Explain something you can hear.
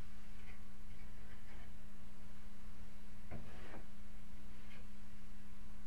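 A man scrapes plaster off a ceiling in short bursts.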